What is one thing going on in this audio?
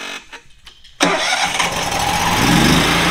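A generator engine starts and runs loudly.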